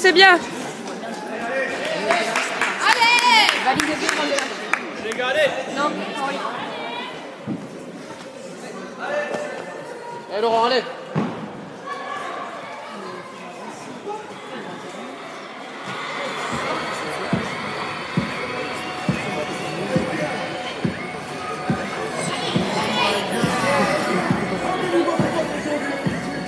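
Voices of a crowd of men and women talk and shout in a large echoing hall.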